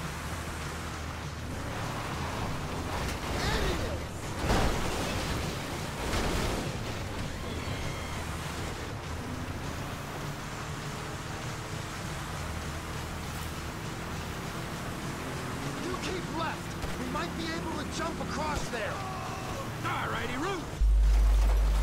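A car engine rumbles steadily as an off-road vehicle drives over a bumpy dirt track.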